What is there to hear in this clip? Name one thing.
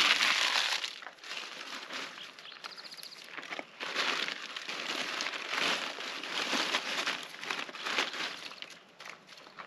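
Paper crinkles and rustles as it is crumpled by hand.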